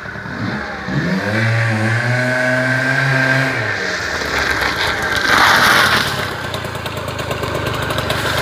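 A motorbike engine grows louder as the bike rides back and passes close by.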